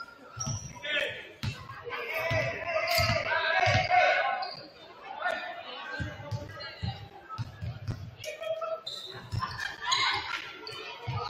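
A crowd of young people chatters in the background.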